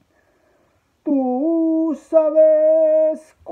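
A man sings long, held notes loudly.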